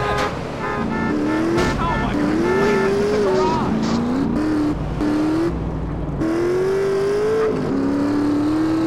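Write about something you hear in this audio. A motorcycle engine revs and roars, rising and falling in pitch as it speeds along.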